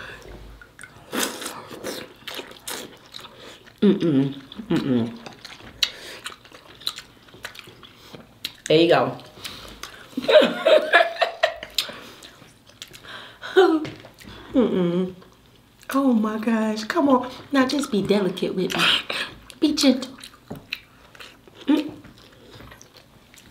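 Crab shells crack and food is chewed noisily up close.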